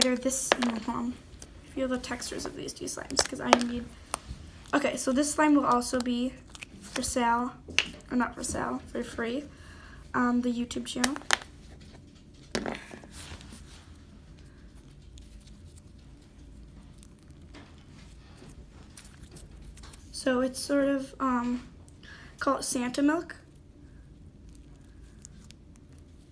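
Soft slime squishes and squelches as fingers knead and stretch it.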